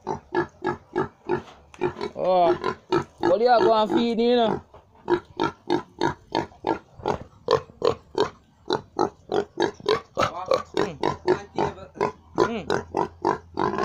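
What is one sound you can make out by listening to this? A pig grunts in quick, steady bursts close by.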